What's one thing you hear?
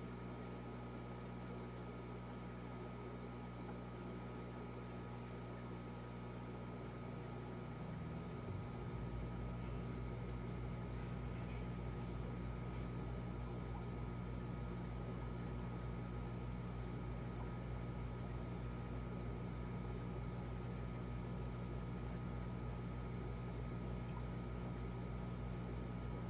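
An aquarium filter pump hums steadily, growing louder partway through.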